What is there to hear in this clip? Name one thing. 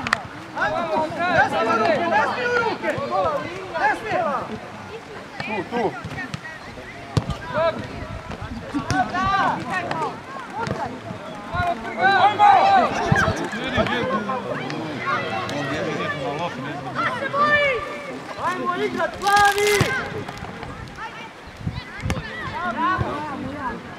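Young players shout and call to each other across an open field.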